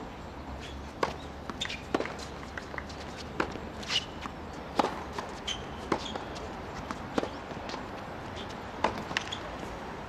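A tennis ball bounces on a hard court.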